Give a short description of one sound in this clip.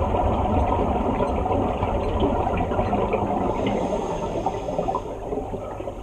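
Scuba air bubbles gurgle and rumble underwater.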